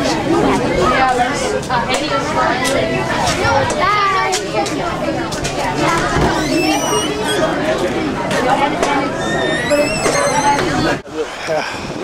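Young girls chatter and laugh excitedly close by.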